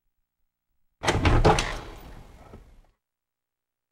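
A wooden door creaks open slowly.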